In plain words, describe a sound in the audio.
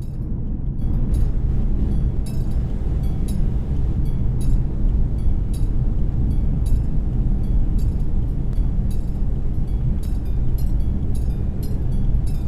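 Train wheels click over rail joints at a steady pace.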